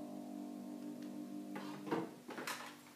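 A piano chord rings out and fades.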